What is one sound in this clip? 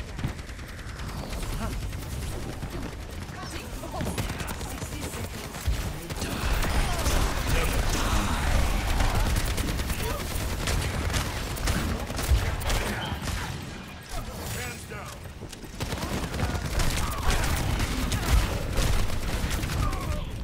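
Rapid gunfire bursts with thumping blasts close by.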